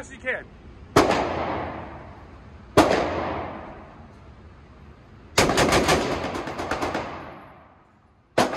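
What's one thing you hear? A rifle fires loud single shots and a rapid burst that echo through a large hall.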